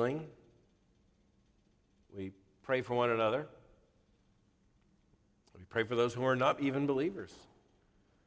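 A middle-aged man speaks slowly and calmly into a microphone in a large room.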